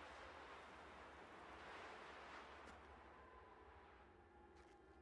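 Wind blows through a snowstorm.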